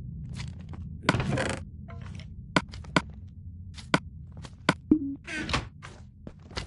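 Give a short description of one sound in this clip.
A wooden chest creaks open and shut.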